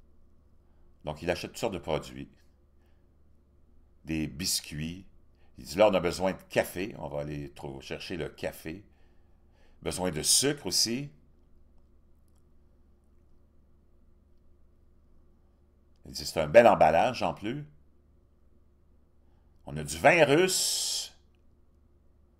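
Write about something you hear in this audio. A middle-aged man speaks in short bursts with pauses, close to a microphone.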